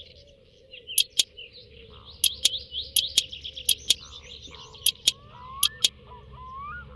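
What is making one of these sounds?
A wrench clicks sharply as a bolt is turned.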